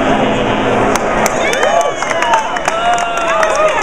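People clap and cheer.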